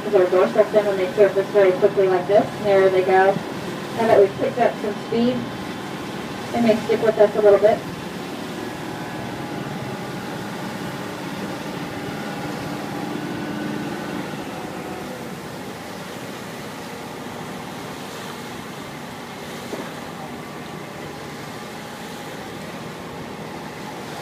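Water rushes and splashes along the side of a moving boat.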